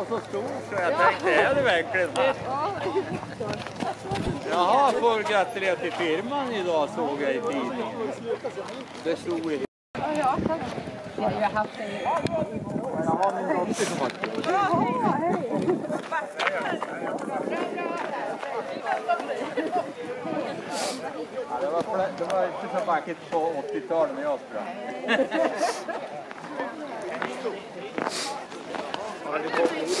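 A crowd of men and women chat outdoors nearby.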